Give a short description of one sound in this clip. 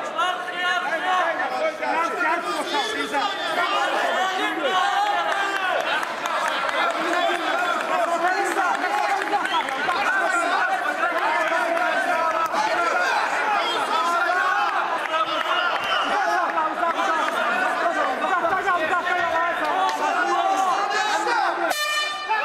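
A large crowd shouts and cheers in an indoor arena.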